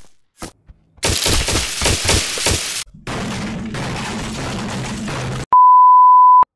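A young man shouts loudly close by.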